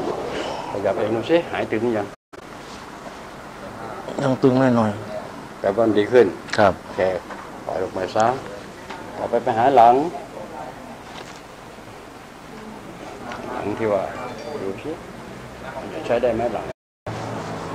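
An elderly man speaks with animation nearby.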